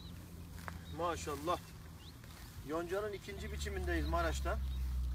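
A man speaks with animation close by, outdoors.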